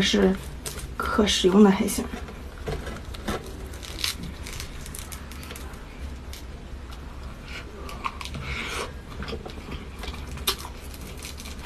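Crunchy shell cracks and crackles as it is broken apart by hand.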